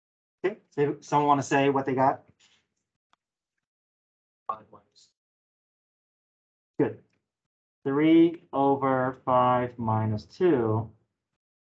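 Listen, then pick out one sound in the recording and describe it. A man speaks calmly into a microphone, explaining in short phrases with pauses.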